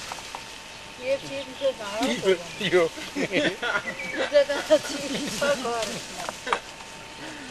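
Women talk outdoors at a distance.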